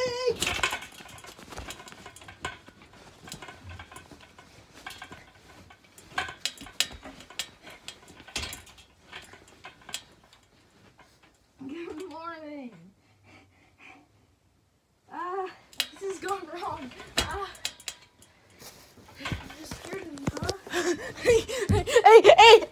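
Children wrestle and thump on a bed.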